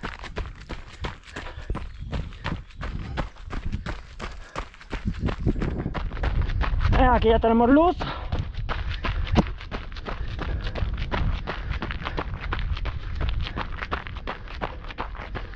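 Running footsteps crunch steadily on a dirt trail.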